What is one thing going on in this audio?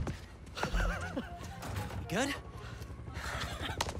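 A young man speaks with excitement.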